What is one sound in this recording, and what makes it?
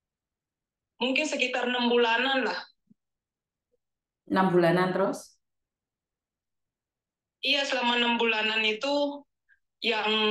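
A woman speaks calmly and clearly into a close microphone, in short phrases with pauses.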